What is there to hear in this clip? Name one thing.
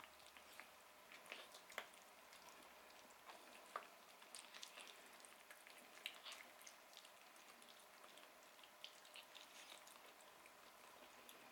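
Paws scrape against a metal bowl.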